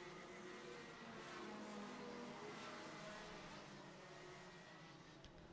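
A kart engine buzzes past and fades.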